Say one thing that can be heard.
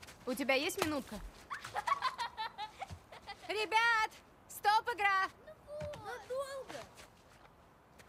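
Young women laugh and shout playfully a short way off.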